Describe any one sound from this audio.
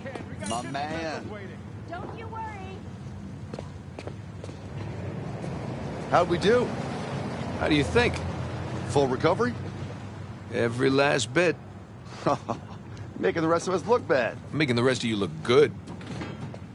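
A second man speaks and laughs, close by.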